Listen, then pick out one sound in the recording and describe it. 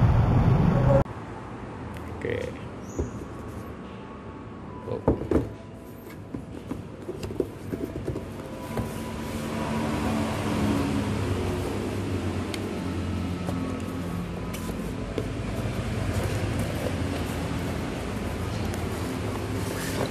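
A cardboard box rustles and knocks as hands open it.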